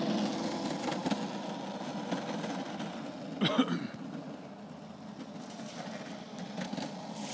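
A small electric ride-on toy car hums as it rolls along pavement.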